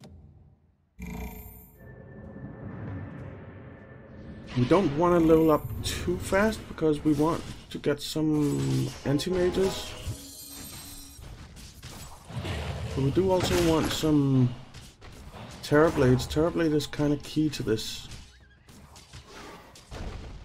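Fighters clash in a game battle, with hits and magical effects.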